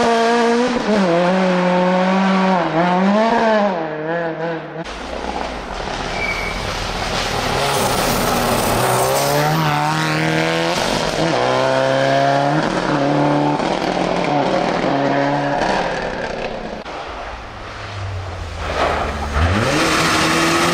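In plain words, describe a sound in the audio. Rally car engines roar and rev hard at high speed.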